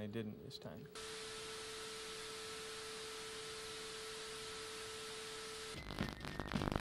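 Static hisses steadily from a television.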